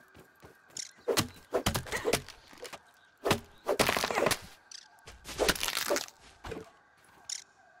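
Grass stalks are chopped with sharp whacks.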